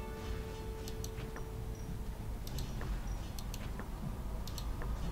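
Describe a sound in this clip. Short electronic clicks tick now and then.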